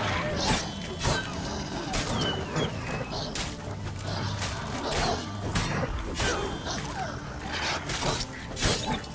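A sword swishes and strikes in repeated sharp blows.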